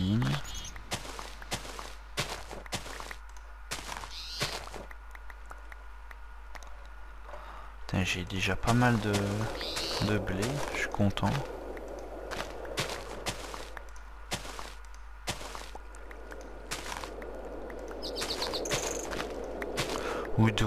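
Crops snap and crunch in quick short bursts as they are broken.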